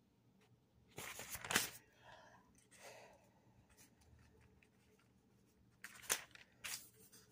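Thin paper pages rustle as they are turned.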